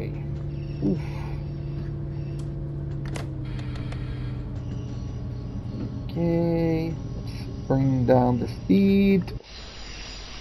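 A train engine hums steadily from inside the cab.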